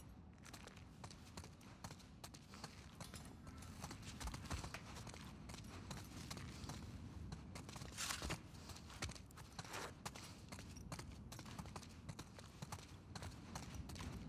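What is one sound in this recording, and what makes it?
Footsteps crunch and scuff over a debris-strewn floor.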